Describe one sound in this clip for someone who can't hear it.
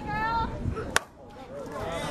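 A bat strikes a softball with a sharp crack.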